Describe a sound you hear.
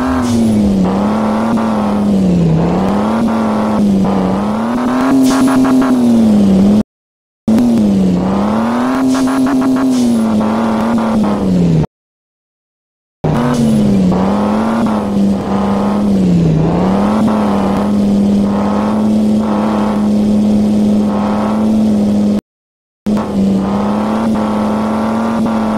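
A car engine revs up and down, whining as it speeds along.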